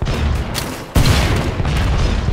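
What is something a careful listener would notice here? An explosion bursts with a heavy boom.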